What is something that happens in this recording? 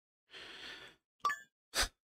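A phone call ends with a short electronic tone.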